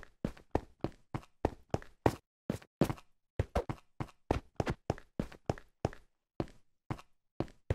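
Footsteps tread quickly and steadily on stone.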